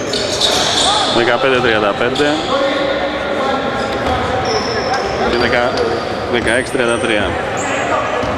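Sneakers squeak sharply on a gym floor in an echoing hall.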